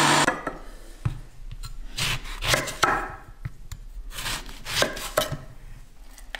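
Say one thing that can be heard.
A knife chops through a lemon onto a wooden board.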